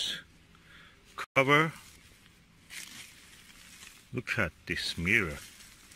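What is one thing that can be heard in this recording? Plastic wrap crinkles as it is peeled away.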